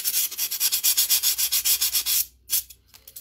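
Paper crinkles and rustles in a woman's hands.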